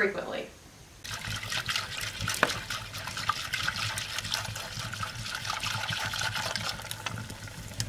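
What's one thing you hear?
A whisk beats liquid in a metal pot.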